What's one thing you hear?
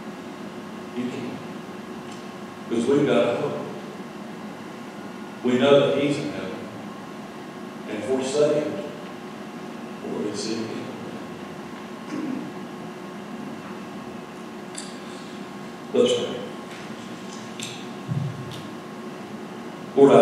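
A middle-aged man speaks slowly and solemnly through a microphone in a large echoing hall, with long pauses.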